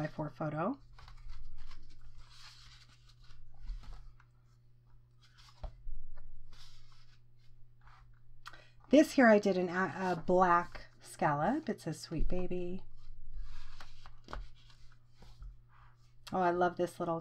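Stiff paper pages rustle and flip.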